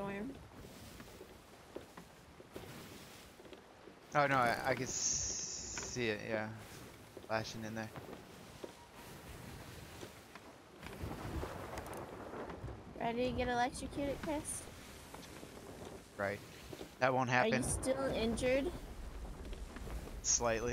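Ocean waves surge and crash.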